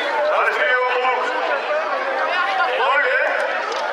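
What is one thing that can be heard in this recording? A middle-aged man talks with animation into a microphone over a loudspeaker.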